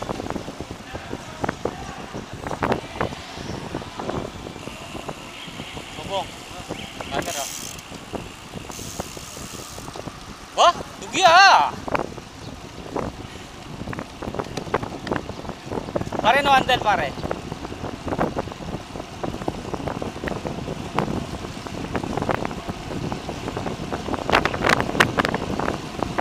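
Wind rushes past while riding a bicycle outdoors.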